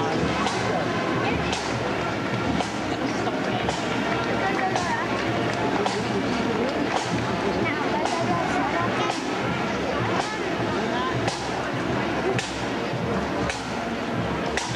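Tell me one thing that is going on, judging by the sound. A band of bagpipes plays loudly outdoors as it marches past.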